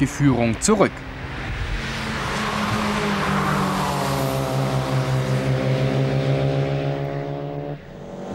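Racing car engines roar past with a steady, droning whine.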